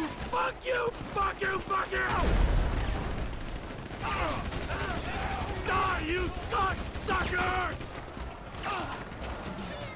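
A gun fires in bursts.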